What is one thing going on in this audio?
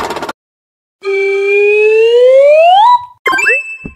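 A whistle-like game tone slides steadily upward.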